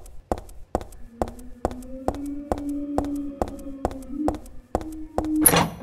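Quick footsteps run on a hard tiled floor.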